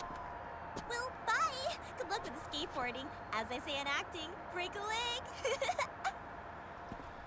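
A young woman calls out a cheerful goodbye.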